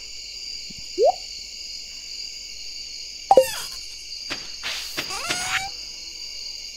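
Short electronic blips and chimes sound now and then.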